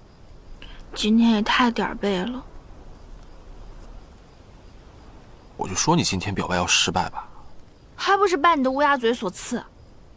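A young woman speaks quietly, close by.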